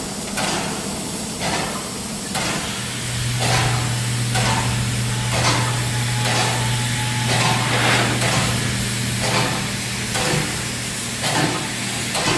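A steam locomotive chuffs with rhythmic bursts of steam as it pulls slowly forward.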